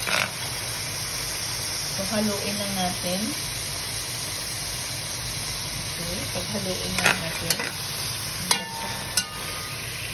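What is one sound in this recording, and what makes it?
Meat and onions sizzle in hot oil in a pan.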